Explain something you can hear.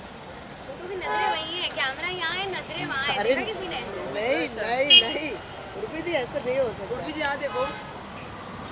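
A young woman talks cheerfully nearby.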